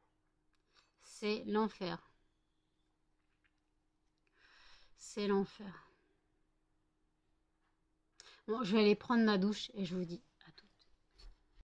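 A woman speaks calmly and close to a microphone, in short bursts with pauses.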